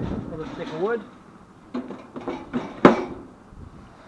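A log knocks against metal as it is put into a firebox.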